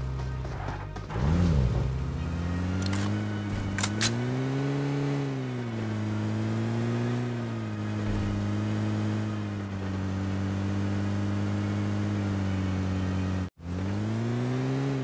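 A vehicle engine hums steadily, its pitch rising and falling as it drives.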